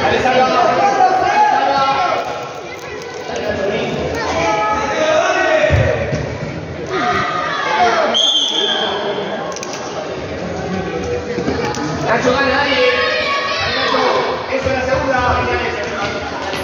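Adults call out loudly from nearby.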